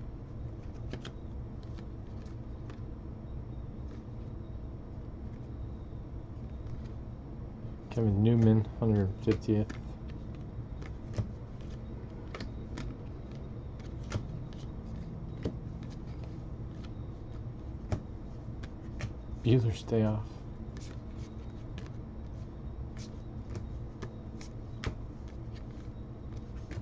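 Stiff cards flick and slap softly as they are sorted by hand.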